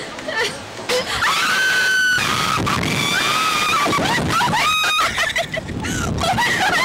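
Young women scream loudly.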